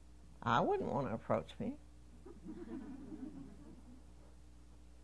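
An elderly woman speaks with feeling into a microphone.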